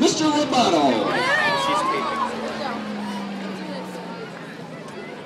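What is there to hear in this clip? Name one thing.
A marching band plays outdoors and holds a final low note that fades away.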